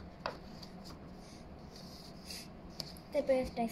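Paper rustles softly as a page is handled.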